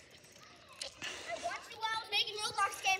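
Children talk and call out outdoors.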